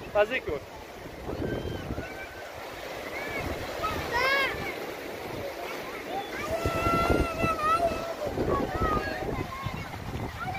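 Children splash in shallow water.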